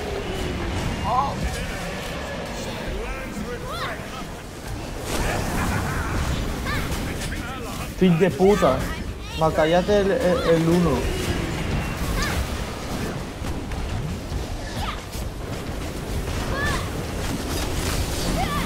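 Magic spells whoosh and crackle in a fast fight.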